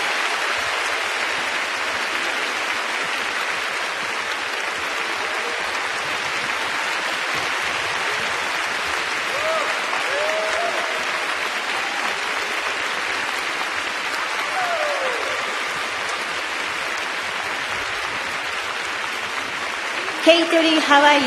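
A large crowd cheers and applauds steadily in a big echoing arena.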